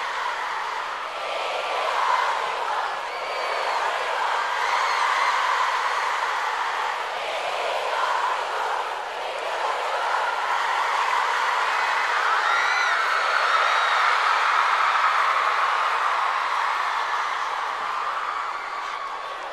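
A large crowd of young women screams and cheers loudly in a big arena.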